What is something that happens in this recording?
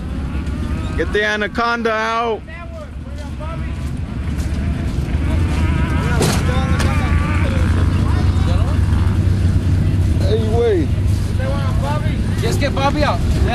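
Men shout and call out outdoors nearby.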